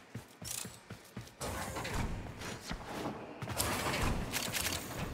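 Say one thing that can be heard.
Quick footsteps thud on a metal floor.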